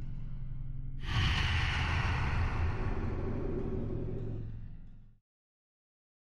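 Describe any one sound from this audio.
A loud rushing whoosh sweeps in.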